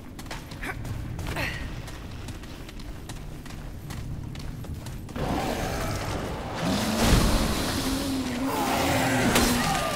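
Footsteps walk over a hard floor.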